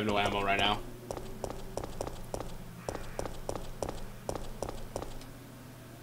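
Boots thud in steady footsteps on a hard floor.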